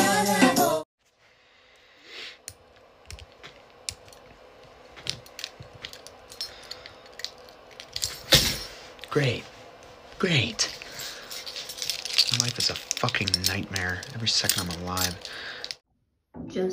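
Metal keys click and jingle on a key ring.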